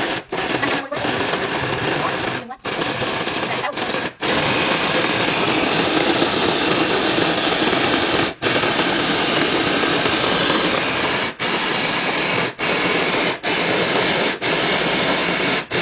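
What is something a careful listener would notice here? A food chopper motor whirs loudly in short bursts, grinding food against a plastic bowl.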